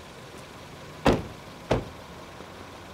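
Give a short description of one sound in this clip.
Car doors slam shut.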